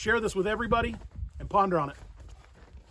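A man speaks calmly up close, outdoors.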